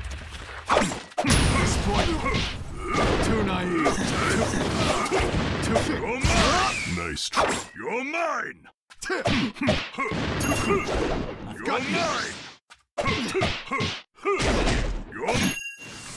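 Blows thud and crack as fighters strike each other.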